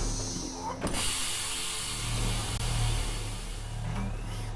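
Air hisses loudly as a chamber depressurizes.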